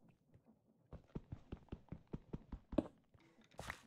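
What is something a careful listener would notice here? A hammer breaks stone blocks with quick, repeated crunching knocks.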